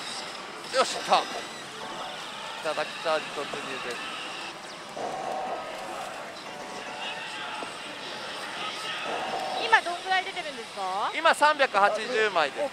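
A slot machine plays electronic jingles and sound effects.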